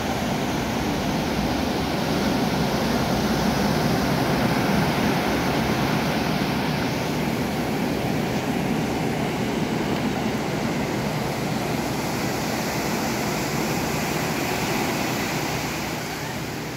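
Waves crash and wash continuously onto a shore.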